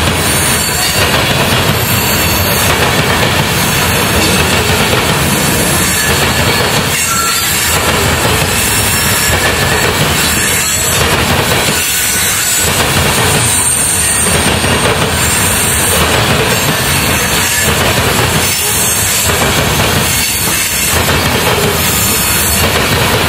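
A freight train rumbles past close by, wheels clattering and squealing on the rails.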